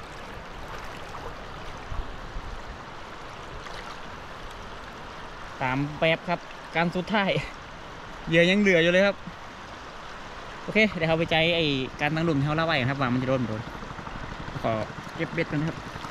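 Water swishes and splashes around a wading man.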